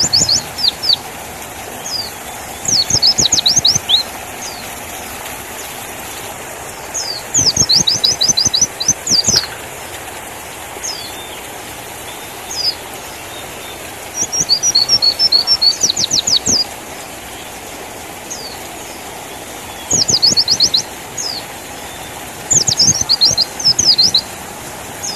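A small bird sings close by in quick bursts of high, sharp chirps and trills.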